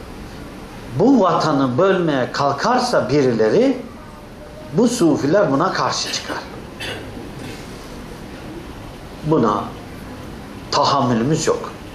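An elderly man speaks with animation, in bursts with pauses.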